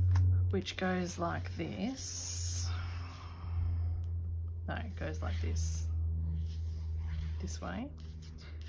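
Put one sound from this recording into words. Plastic binder pages crinkle and rustle.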